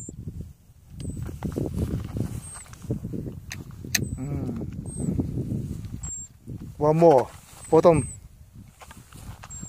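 Wind blows outdoors and rustles the grass.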